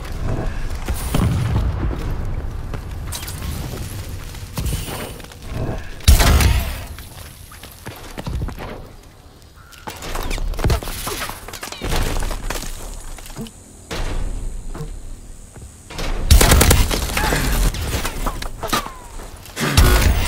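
Gunfire bursts loudly in short rapid volleys.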